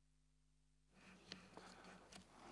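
A man reads out quietly into a microphone.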